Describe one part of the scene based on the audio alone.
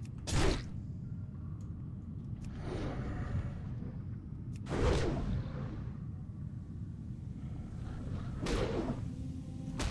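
Heavy blows and whooshes of a fight against a stone creature sound in bursts.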